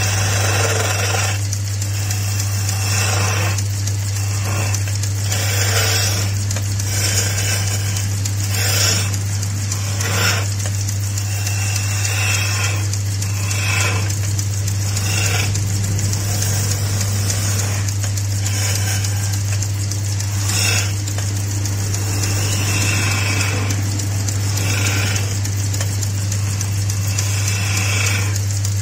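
A chisel scrapes and shaves the spinning wood in bursts.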